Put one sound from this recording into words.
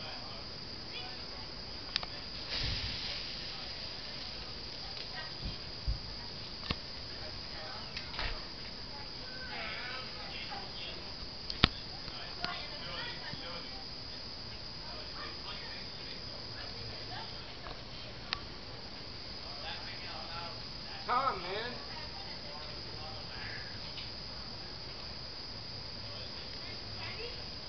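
A small fire crackles outdoors at night.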